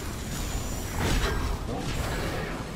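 A large creature's body crashes with a heavy whoosh.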